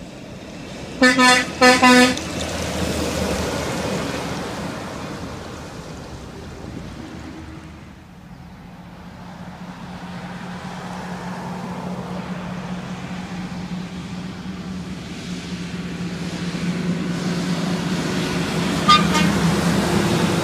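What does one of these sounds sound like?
A semi truck's air horn blasts twice nearby.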